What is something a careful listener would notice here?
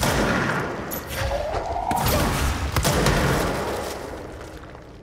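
Loud explosions and crashing debris burst in a game fight.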